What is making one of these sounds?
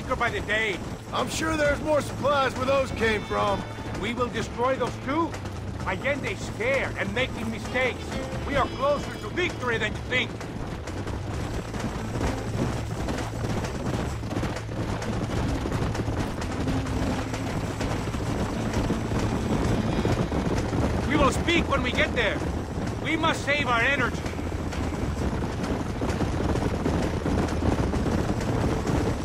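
Horses' hooves gallop steadily over dry ground.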